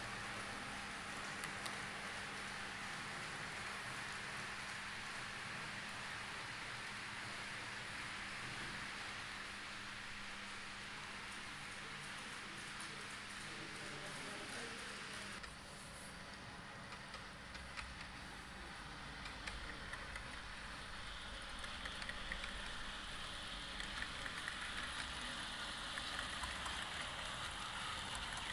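A model train rumbles closer, its wheels clicking on the rails.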